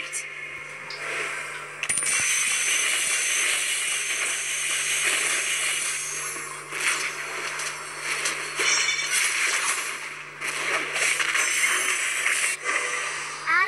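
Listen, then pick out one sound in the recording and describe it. Fast game fighting effects clash and crackle.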